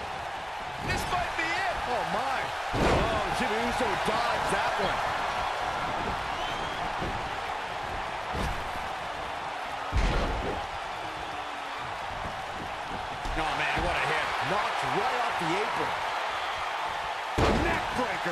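Wrestlers slam heavily onto a ring mat with loud thuds.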